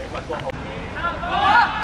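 A group of young men shout together loudly.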